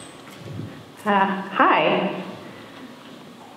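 A young woman speaks through a loudspeaker in a large echoing hall.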